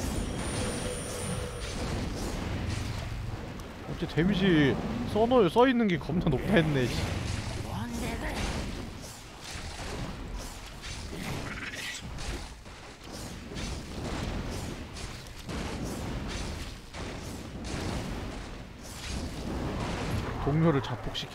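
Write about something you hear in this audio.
Weapons clash and magic blasts crackle in a busy battle.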